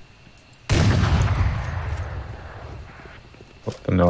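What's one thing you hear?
A sudden whooshing burst rings out and fades away.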